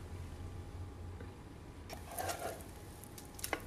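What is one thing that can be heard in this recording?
A bowl is set down.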